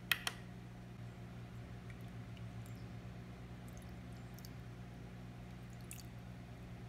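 Water pours into a glass jar.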